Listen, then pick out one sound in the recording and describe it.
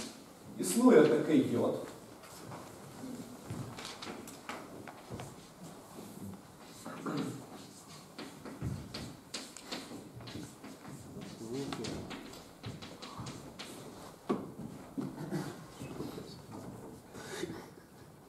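A man lectures calmly in a room with some echo.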